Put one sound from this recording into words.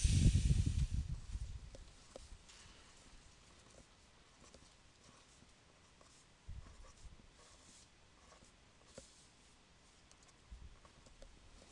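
A pen taps and scratches on paper.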